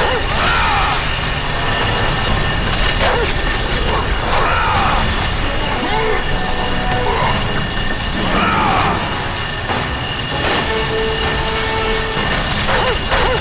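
Chained blades whoosh and strike in a fast fight.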